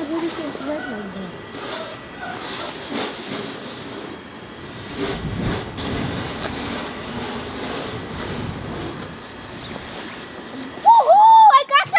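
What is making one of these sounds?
Hands scrape and pat at crunchy snow close by.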